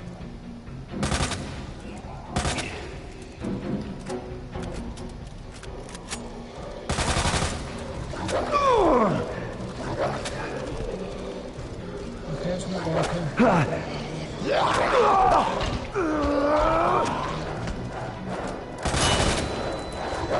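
A gun fires in loud, sharp blasts.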